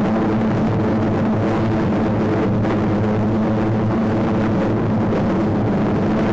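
Propeller engines drone steadily in a low, even roar.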